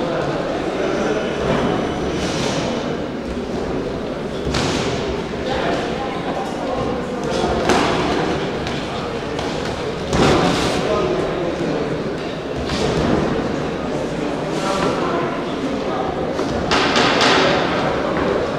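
Gloved punches thud now and then.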